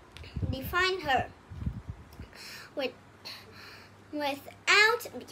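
A young girl reads aloud nearby, in a high, lively voice.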